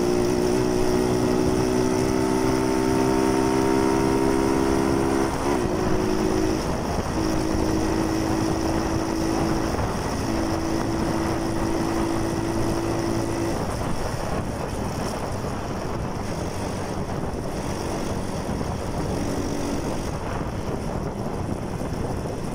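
Wind rushes past loudly while riding.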